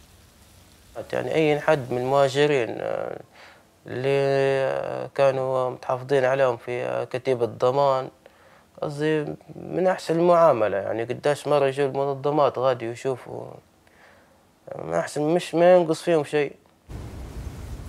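A man speaks calmly and closely, in short phrases with pauses.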